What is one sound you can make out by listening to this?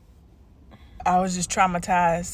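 A woman talks with animation, close to a phone microphone.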